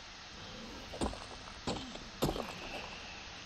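A pickaxe strikes stone with sharp knocks.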